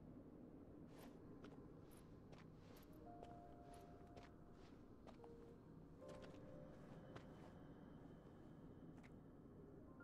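Embers crackle and pop softly.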